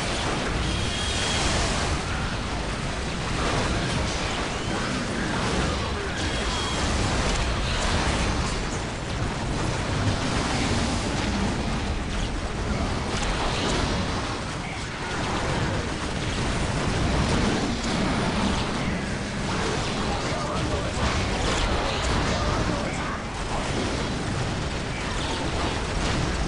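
Guns fire rapidly in a loud battle.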